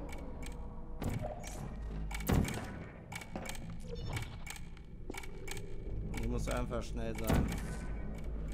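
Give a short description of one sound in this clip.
A portal gun fires with sharp electronic zaps.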